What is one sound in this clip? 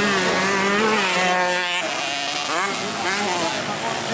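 Dirt bike engines rev hard, rising and falling in pitch.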